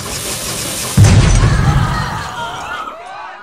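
A toy train crashes with a loud clatter.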